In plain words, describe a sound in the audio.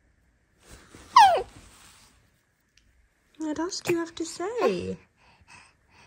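A baby squeals and coos close by.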